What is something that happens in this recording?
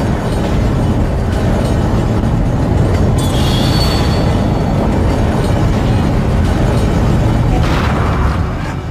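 An energy weapon fires with a loud, steady crackling hum.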